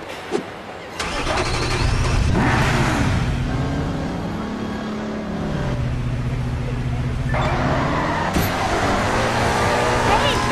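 A sports car engine starts up and revs, rising and falling in pitch.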